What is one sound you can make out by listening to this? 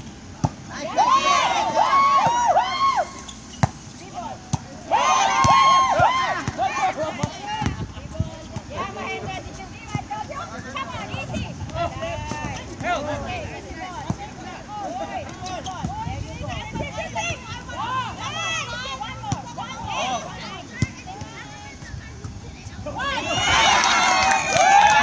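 Players and onlookers shout and cheer outdoors.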